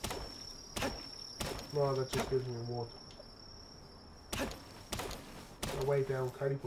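An axe chops into wood with sharp thuds.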